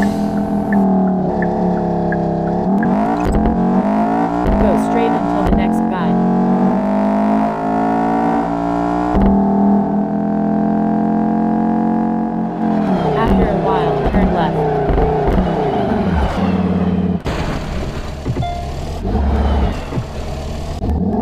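A racing car engine roars, rising in pitch as it speeds up and shifting gears.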